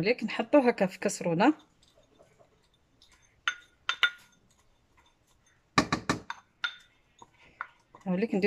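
A spoon scrapes against a ceramic bowl.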